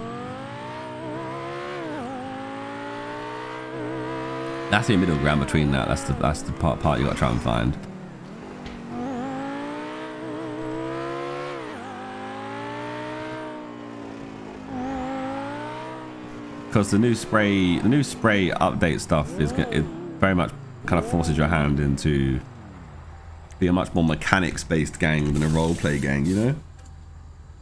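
A sports car engine revs hard, rising and falling as gears change.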